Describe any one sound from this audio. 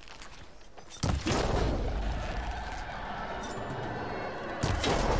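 An arrow strikes a machine with a crackling electric burst.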